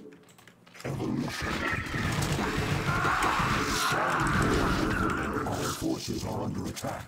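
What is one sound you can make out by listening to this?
Video game battle effects crackle and pop.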